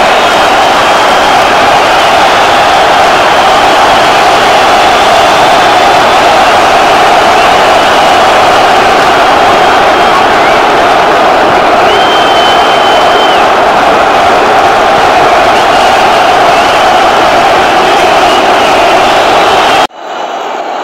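A large stadium crowd roars and chants outdoors.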